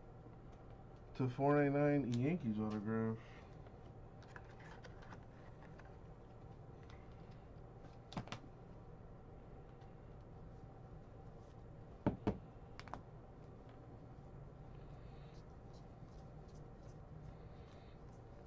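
Trading cards click and rustle as they are handled.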